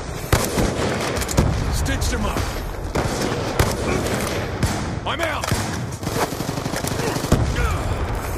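A rifle fires loud single shots.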